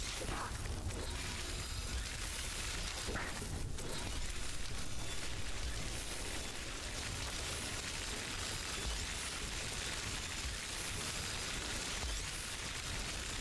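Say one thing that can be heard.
Electricity crackles and zaps.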